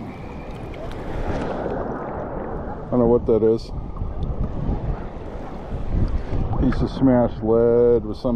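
Shallow water laps and splashes gently close by.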